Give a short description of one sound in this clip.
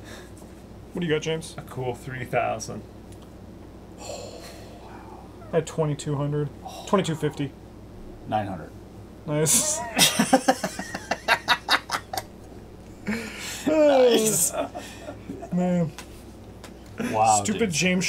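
Young men talk and laugh with animation, heard close through a microphone.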